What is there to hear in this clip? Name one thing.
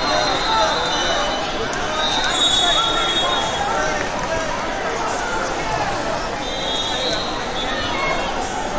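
A large crowd chatters and shouts in a big echoing hall.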